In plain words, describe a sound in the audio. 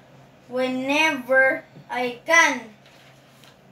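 A young boy reads aloud close by.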